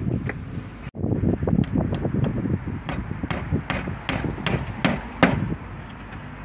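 A hammer taps a chisel against wood.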